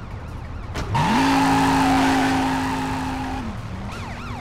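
A car engine roars loudly.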